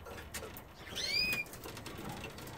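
A small bird chirps briefly.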